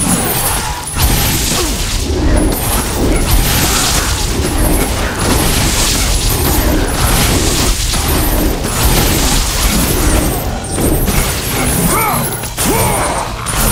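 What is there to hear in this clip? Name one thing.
Chained blades whoosh and slash through the air.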